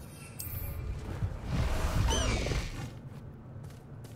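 A horse's hooves thud on the ground.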